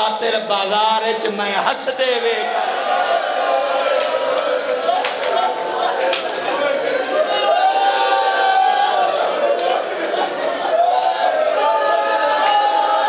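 A man speaks passionately and loudly into a microphone, heard through loudspeakers.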